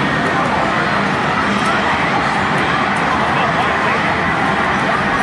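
Fighting game music plays loudly from a loudspeaker.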